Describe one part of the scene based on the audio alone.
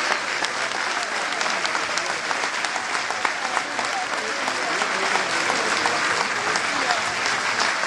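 A woman laughs close by.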